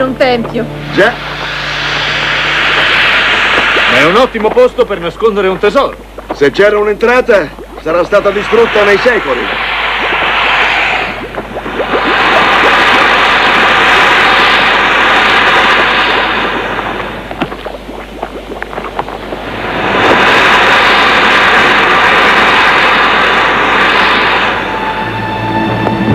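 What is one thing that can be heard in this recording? Steam hisses loudly from vents in the ground.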